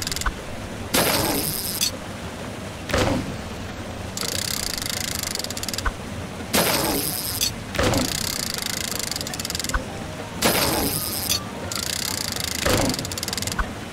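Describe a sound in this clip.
Electronic game effects whoosh and crash in repeated bursts.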